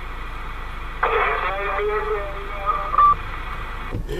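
A man talks through a crackling radio loudspeaker.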